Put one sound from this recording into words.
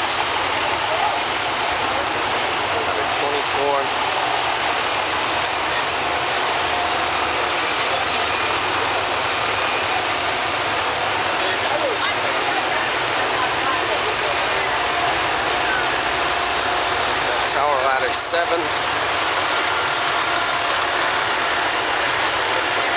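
A crowd of adults murmurs and talks nearby.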